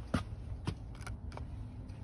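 A doorbell button clicks as it is pressed.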